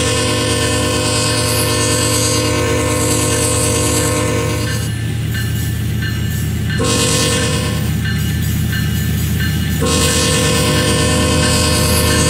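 A train horn blares in long, loud blasts.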